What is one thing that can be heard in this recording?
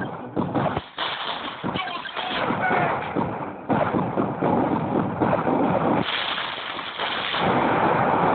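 Gunfire and explosions crackle.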